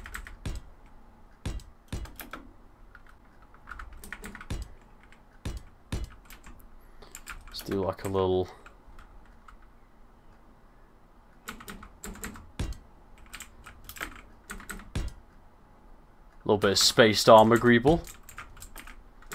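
Short, sharp clicks sound again and again as building blocks are placed.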